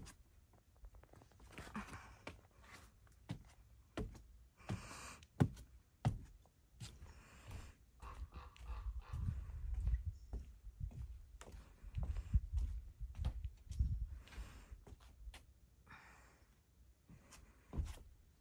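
Footsteps thud on a wooden deck.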